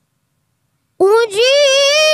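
A boy chants loudly and melodically into a microphone, with a ringing echo.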